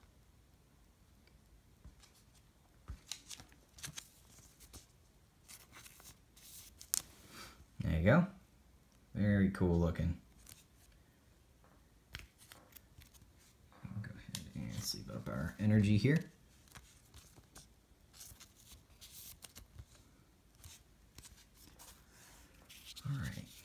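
Trading cards in plastic sleeves rustle and tap softly as hands handle them, close up.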